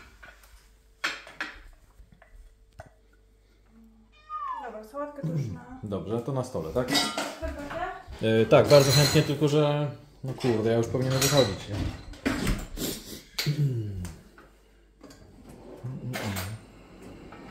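Dishes and utensils clatter on a counter.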